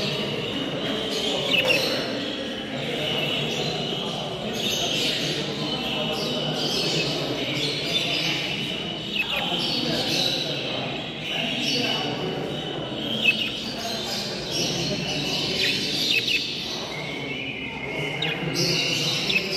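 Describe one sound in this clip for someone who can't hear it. Many budgies chirp and chatter all around.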